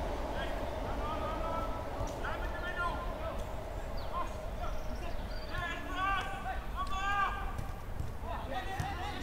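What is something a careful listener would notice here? Young men shout and call to each other across an open outdoor pitch.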